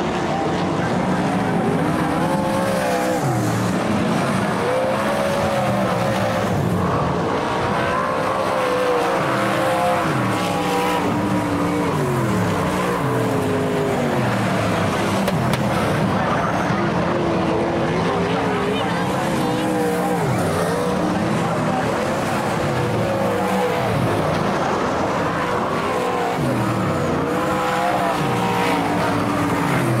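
Race car engines roar loudly as the cars speed past, rising and falling in pitch.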